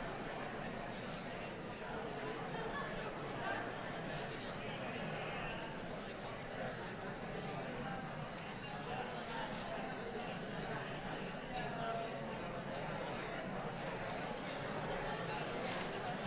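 A crowd of people chatters quietly in the background.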